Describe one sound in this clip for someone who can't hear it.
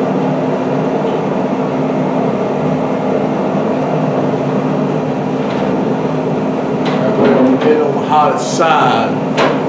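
A brick scrapes and clunks on a metal grill grate.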